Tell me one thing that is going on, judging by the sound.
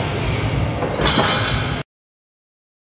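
Weight plates clank on a metal rack.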